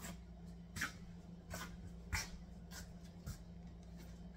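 Footsteps walk away across a hard floor.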